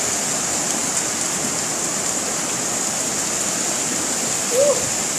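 Floodwater rushes and roars steadily nearby.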